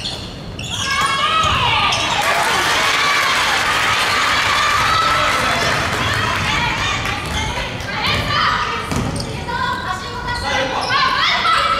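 A crowd of young people cheers and shouts in an echoing hall.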